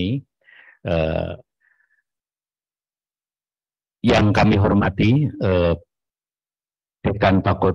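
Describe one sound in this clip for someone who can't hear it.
A man speaks into a microphone, heard through an online call, in short phrases with pauses.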